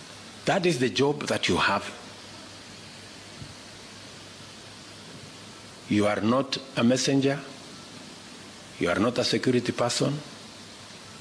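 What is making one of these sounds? A middle-aged man speaks slowly and formally into a microphone, with pauses between phrases.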